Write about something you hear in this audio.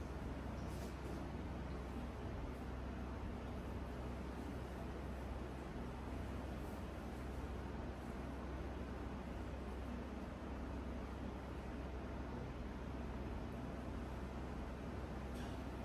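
A towel rubs softly against hair.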